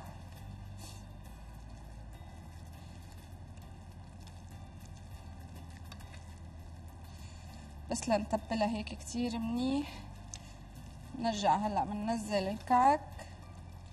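Hands squish and knead soft minced meat.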